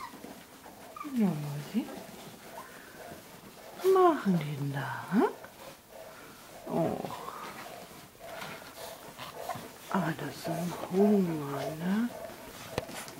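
Newborn puppies squeal and whimper close by.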